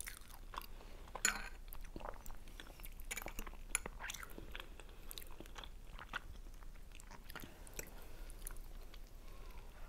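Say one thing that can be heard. A fork scrapes and taps on a plate.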